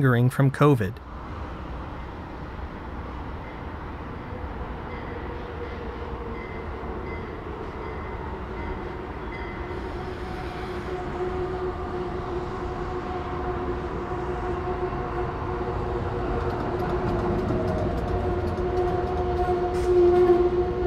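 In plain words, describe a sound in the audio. A train rolls in along the tracks, its rumble growing steadily louder.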